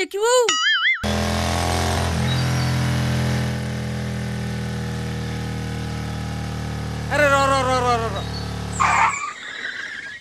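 A motorbike engine runs steadily and loudly.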